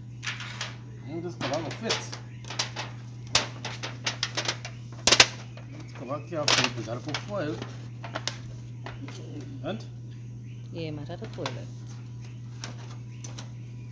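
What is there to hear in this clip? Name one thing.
An aluminium foil lid crinkles and scrapes against a foil tray.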